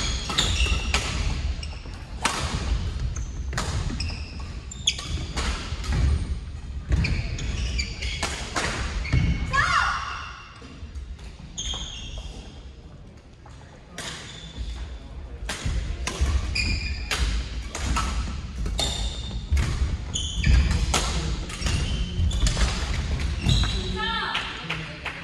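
Badminton rackets strike shuttlecocks in a large echoing hall.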